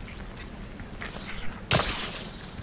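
A beam weapon fires with a buzzing hiss.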